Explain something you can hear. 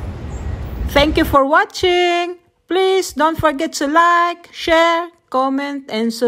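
A young woman speaks cheerfully, close to a microphone.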